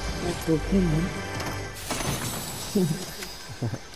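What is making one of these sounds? A treasure chest opens with a shimmering chime.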